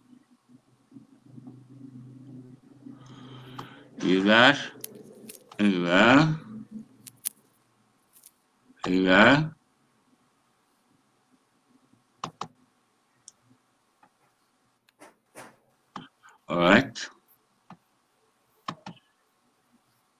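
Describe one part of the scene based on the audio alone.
A man speaks with animation over an online call, in short bursts.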